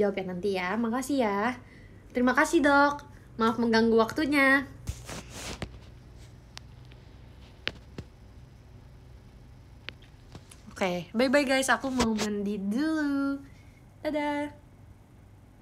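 A young woman talks close up with animation, in a high bright voice.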